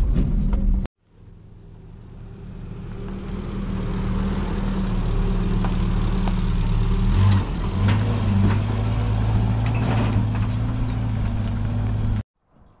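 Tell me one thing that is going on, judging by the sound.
A pickup truck engine idles and revs nearby.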